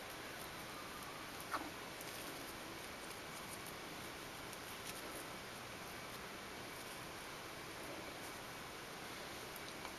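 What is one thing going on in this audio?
A thin ribbon rustles softly as fingers handle and tie it.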